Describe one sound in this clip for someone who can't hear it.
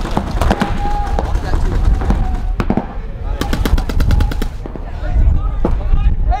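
Paintball markers fire in rapid bursts.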